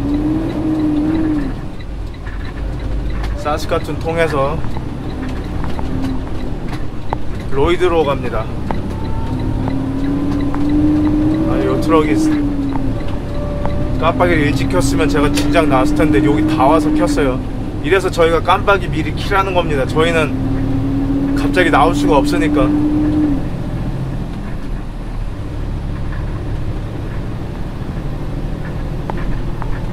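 A car drives along a road with a steady low rumble.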